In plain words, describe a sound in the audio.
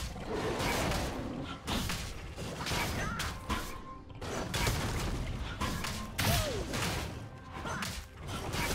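Video game combat effects whoosh and thud in quick bursts.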